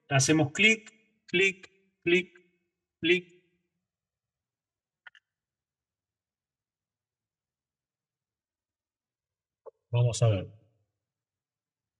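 A man talks calmly into a close microphone in short bursts.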